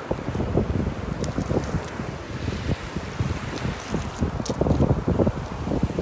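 Shells clink softly as a hand picks through them.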